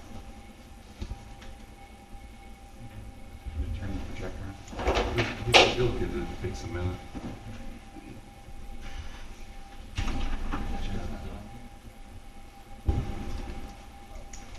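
A man speaks calmly from a distance.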